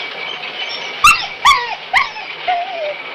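A dog barks sharply a few times close by.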